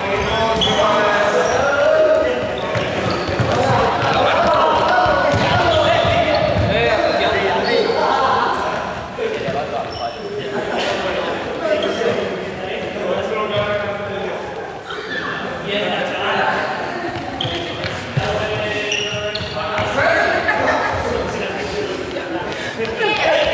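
Young people shout and call out during a game in a large echoing gym.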